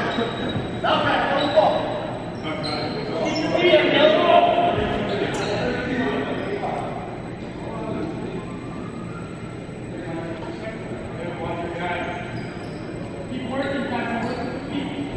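Young men talk and call out in a large echoing hall.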